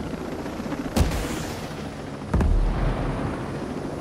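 Rockets fire with sharp bangs and booming blasts.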